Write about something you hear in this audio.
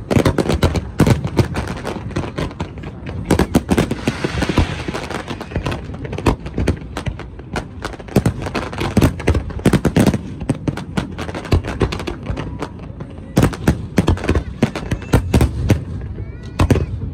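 Fireworks bang and crackle loudly in rapid bursts.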